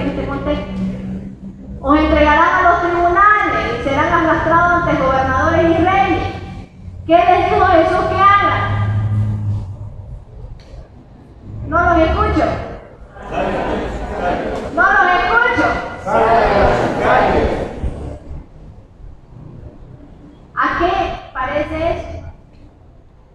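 A young woman speaks with animation through a microphone and loudspeakers in a large echoing hall.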